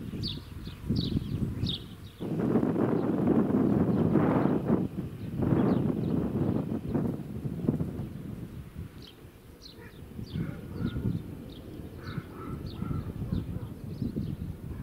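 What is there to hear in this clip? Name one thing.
Wind gusts and rumbles outdoors.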